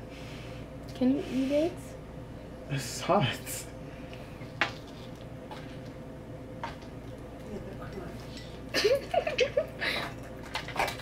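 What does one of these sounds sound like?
A young man laughs and makes short voiced sounds close by.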